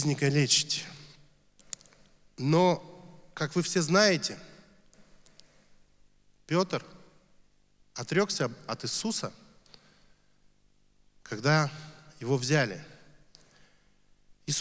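A young man speaks slowly into a microphone, with long pauses.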